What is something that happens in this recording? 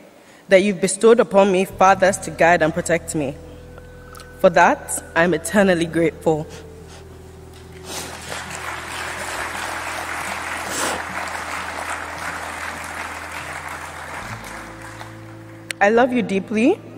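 A young woman speaks slowly and emotionally through a microphone.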